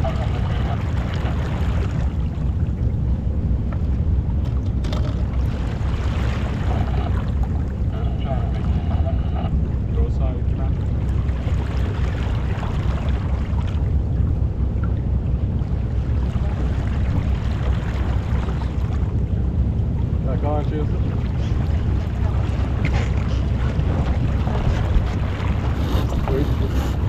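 Water rushes and splashes against a sailing boat's hull.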